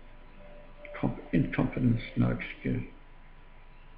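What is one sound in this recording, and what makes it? An elderly man speaks briefly and calmly, close to the microphone.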